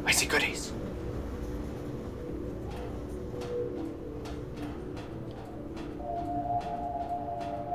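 Footsteps clank on a metal grating.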